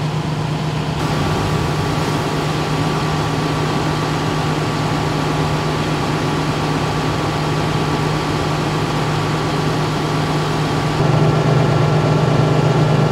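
A fire engine's engine idles with a steady low rumble.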